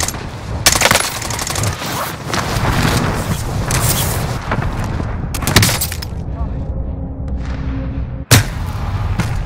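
Gunshots crack loudly a few times.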